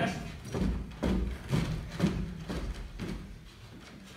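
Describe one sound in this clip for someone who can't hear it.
Feet stamp rhythmically on a wooden stage.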